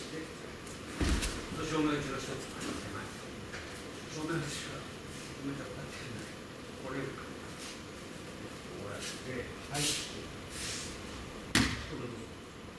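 A body thuds onto a padded mat.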